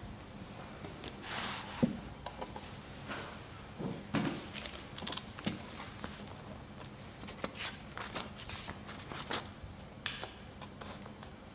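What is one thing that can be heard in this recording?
Book pages rustle.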